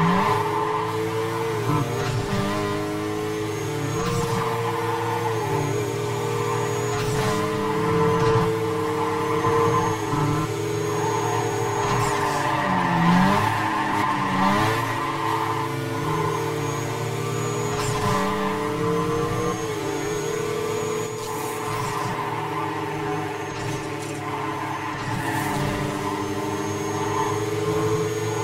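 A car engine roars at high speed, its pitch rising and dropping as gears shift.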